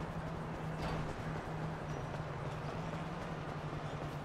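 Footsteps slap on pavement as a man runs.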